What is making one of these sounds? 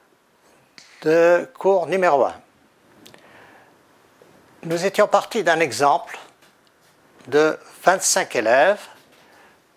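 An older man speaks clearly and calmly, close to a microphone, in short phrases with pauses.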